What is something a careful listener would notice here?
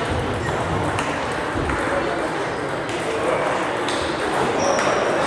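Ping-pong balls click sharply on tables and bats in a large echoing hall.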